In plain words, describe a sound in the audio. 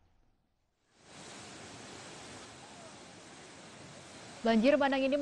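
Floodwater rushes and roars steadily.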